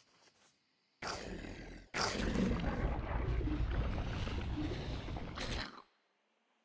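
A deep rumbling whoosh roars and then cuts off.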